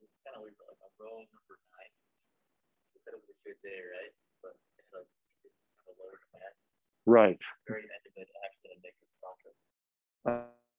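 A man lectures calmly into a microphone.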